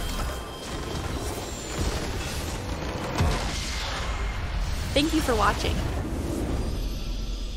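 Magic spells burst and crackle in a game battle.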